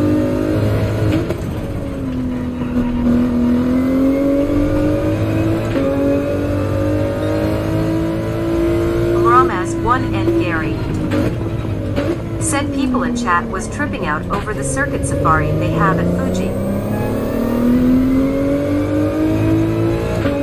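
A racing car engine drones, rising and falling in pitch as the car speeds up and slows down.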